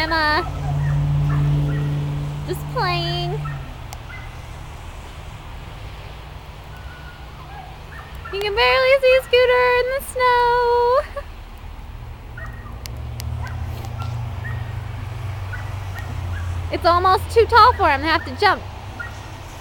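Dogs bark and yelp outdoors.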